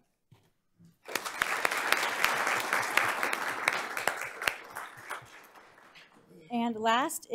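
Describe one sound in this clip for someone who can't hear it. Hands clap in steady applause.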